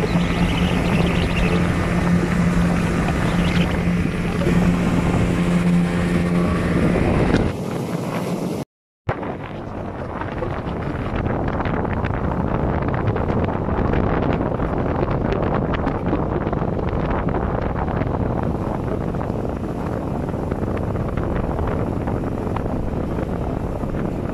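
Wind rushes past loudly in gusts.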